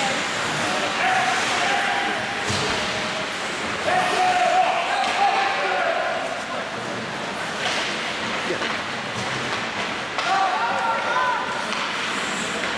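Young men shout to each other from across the rink.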